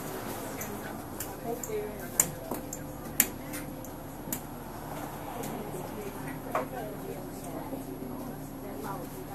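Footsteps clack on the floor as passengers board.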